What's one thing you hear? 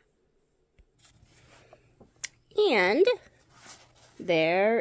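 Fabric rustles softly as a quilt is handled.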